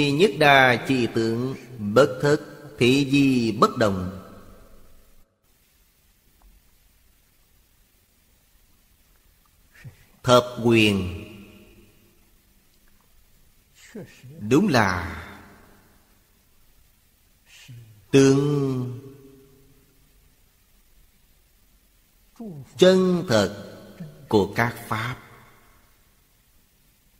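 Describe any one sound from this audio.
An elderly man speaks calmly close to a microphone, with long pauses.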